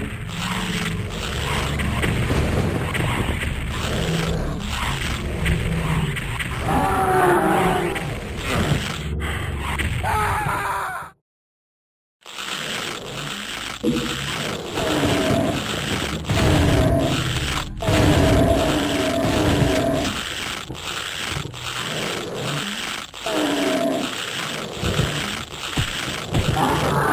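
Gunshots and explosions boom repeatedly.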